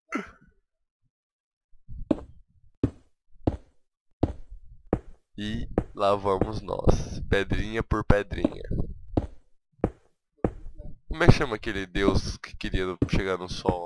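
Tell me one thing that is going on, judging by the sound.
Stone blocks are placed with short, dull knocks.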